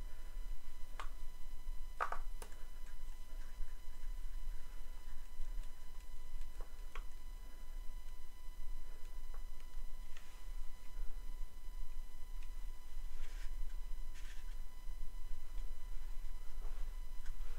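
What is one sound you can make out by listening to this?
Small wooden pieces click and tap against each other as they are handled.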